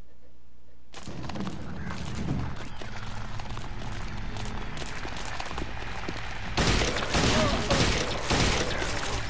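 A young woman talks into a close microphone.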